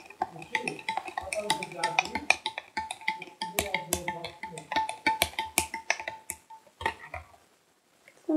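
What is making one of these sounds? Hands rustle and tap against the microphone.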